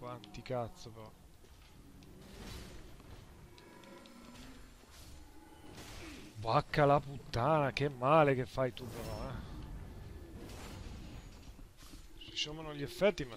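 Swords clash and clang in a fight.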